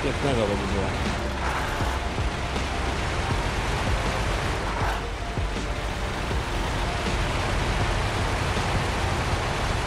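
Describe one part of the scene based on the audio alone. A heavy truck engine rumbles steadily.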